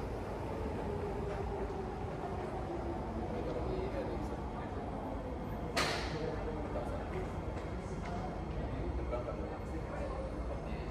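A low hum fills a large echoing hall.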